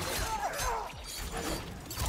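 A blade whooshes through the air.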